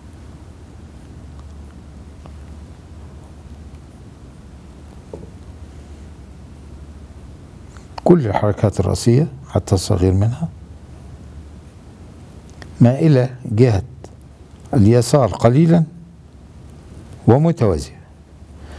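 A brush swishes softly across paper.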